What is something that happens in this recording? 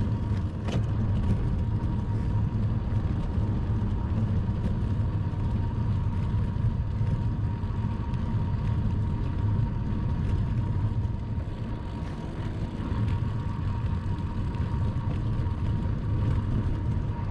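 Wind rushes loudly past a moving bicycle outdoors.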